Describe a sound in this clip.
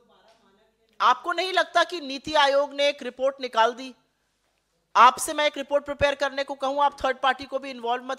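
A woman speaks firmly and with animation into a microphone.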